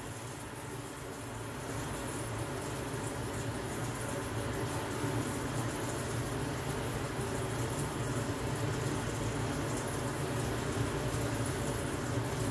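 Coals crackle and pop in a forge fire.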